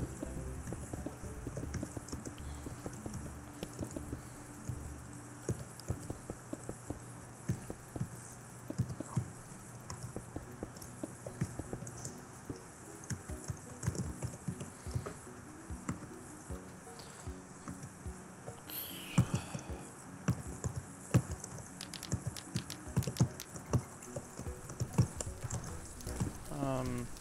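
Stone blocks are placed with short dull clicks.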